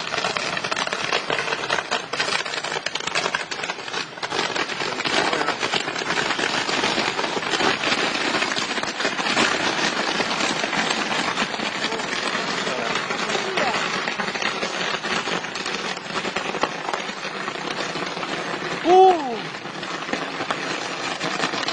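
Fireworks crackle and hiss in rapid bursts.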